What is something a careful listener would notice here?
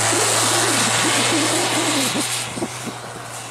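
Tyres spin and churn in deep snow.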